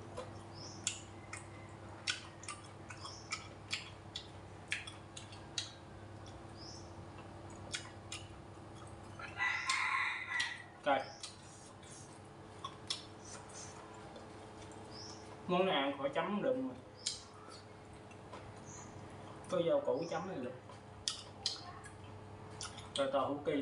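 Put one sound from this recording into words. A young man chews and slurps food noisily close by.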